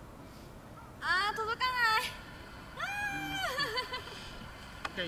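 A young woman cries out in dismay.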